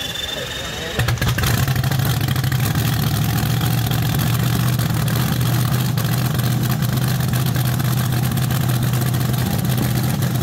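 A dragster engine fires up and idles with a loud, steady rumble close by.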